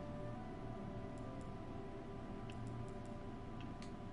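Soft game menu blips sound as a selection changes.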